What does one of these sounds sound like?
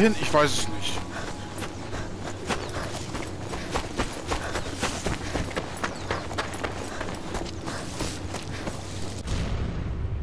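Footsteps crunch quickly over dry ground and gravel.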